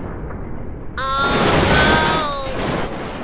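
A truck crashes and breaks apart with loud metal bangs.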